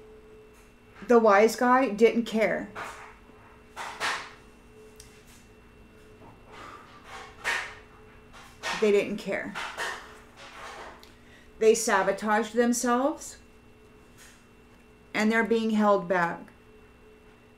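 A middle-aged woman speaks calmly and close to the microphone, in short bursts with pauses.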